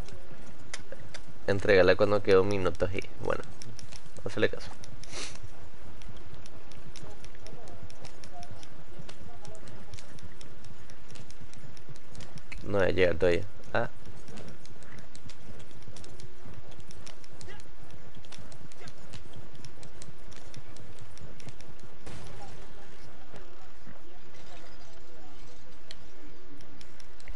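Horse hooves clop steadily on the ground.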